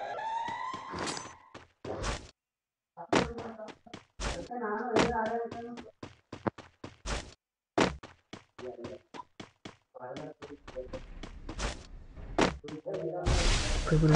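Footsteps thud quickly over grass.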